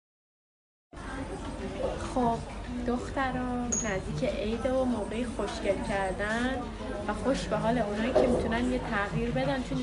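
A young woman talks close to a phone microphone.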